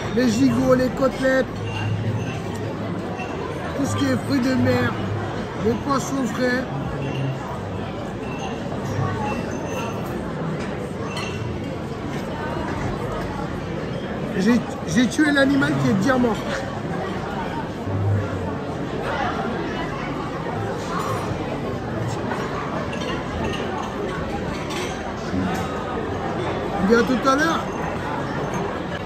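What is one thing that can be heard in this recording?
Diners murmur in the background.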